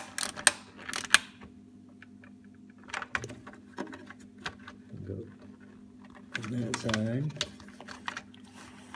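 Plastic parts click and rattle as hands fit them together.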